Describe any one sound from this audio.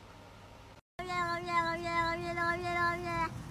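A cat gives a long, steady yowl.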